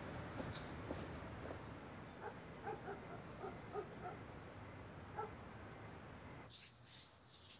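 Traffic hums steadily outdoors at night.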